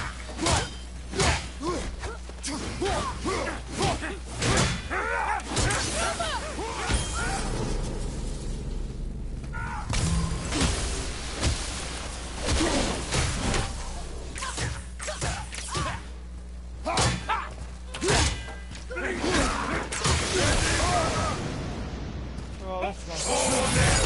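An axe strikes enemies with heavy thuds.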